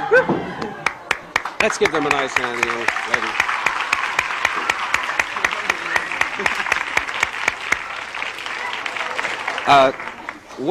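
People clap their hands in applause.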